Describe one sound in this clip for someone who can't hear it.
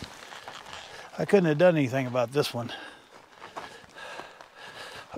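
Footsteps crunch on loose rocky ground.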